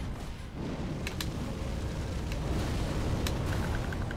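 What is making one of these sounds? A sword slashes with sharp metallic strikes.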